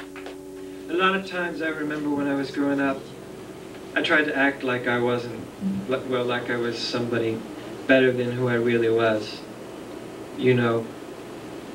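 A young man sings through a microphone.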